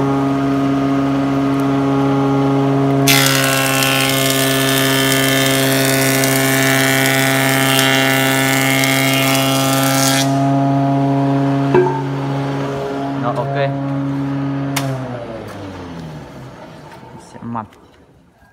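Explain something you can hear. A woodworking machine hums loudly and steadily, then winds down and stops.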